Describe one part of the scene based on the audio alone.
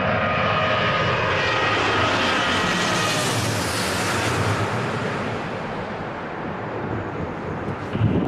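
A Boeing 777 jet airliner passes low overhead with a rushing roar that fades.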